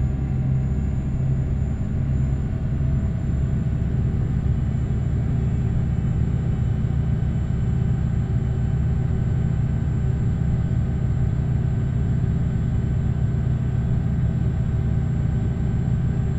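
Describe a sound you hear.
A truck engine drones steadily at low speed.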